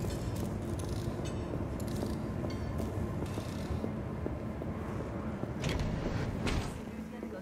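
Footsteps tread slowly on a hard floor.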